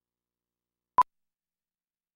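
A single short electronic beep sounds.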